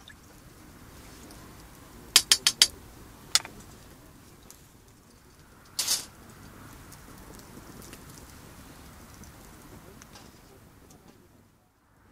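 A spoon scrapes and stirs in a metal pot.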